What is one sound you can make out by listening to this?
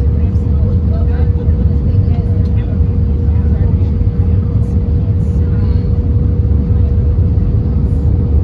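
Jet engines roar steadily from inside an airliner cabin.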